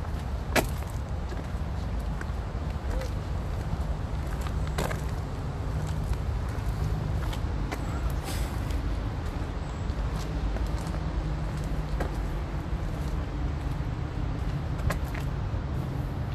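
Footsteps scuff along a concrete path.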